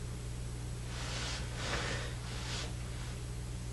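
A woman snores loudly nearby.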